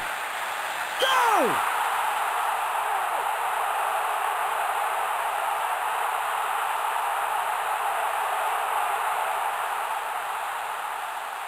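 A stadium crowd cheers loudly as a goal is scored.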